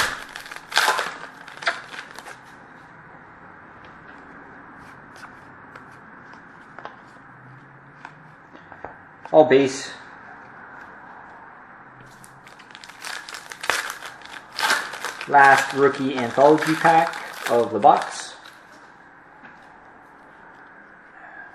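A plastic wrapper crinkles as hands tear it open.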